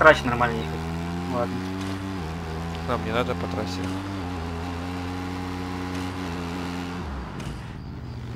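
A motorcycle engine hums steadily and revs.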